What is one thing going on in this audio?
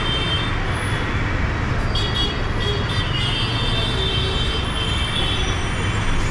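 City traffic rumbles steadily in the distance below.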